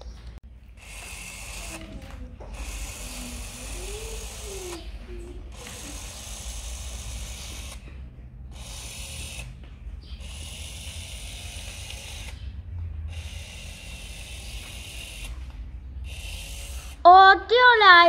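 A small toy robot whirs in short bursts as it rolls across the floor.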